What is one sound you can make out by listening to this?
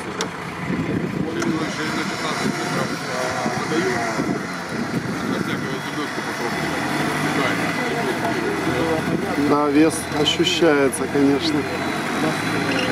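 An off-road truck engine revs and rumbles close by.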